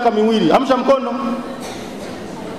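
A man speaks emphatically through a microphone in an echoing hall.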